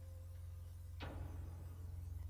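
A menu selection makes a short whooshing chime.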